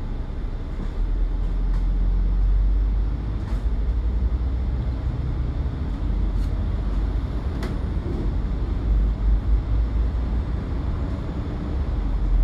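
A bus engine roars louder as the bus pulls away.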